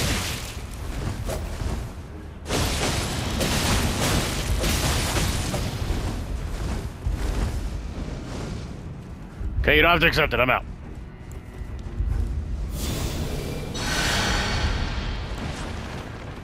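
Magic blasts roar and crackle.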